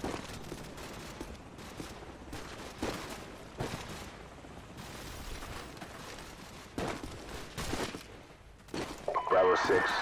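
Footsteps crunch steadily over dry grass and dirt.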